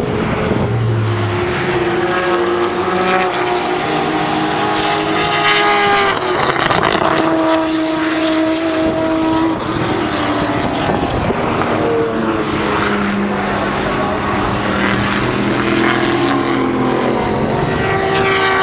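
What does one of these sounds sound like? A racing car engine revs up and down through the gears.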